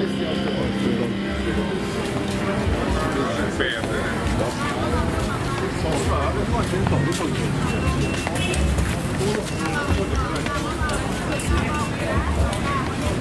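A crowd of people chatter outdoors.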